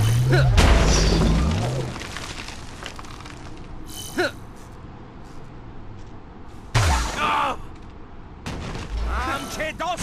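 Heavy crashes and explosions boom.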